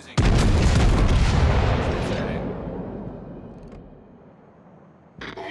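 Heavy guns fire with a deep boom that rolls away slowly.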